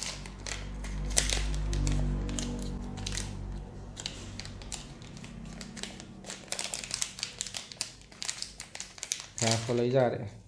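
A plastic foil bag crinkles and rustles in someone's hands.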